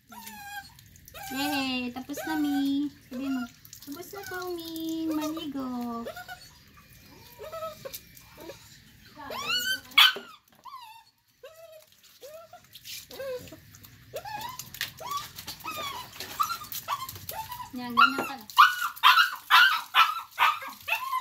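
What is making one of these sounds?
A puppy whines and yelps close by.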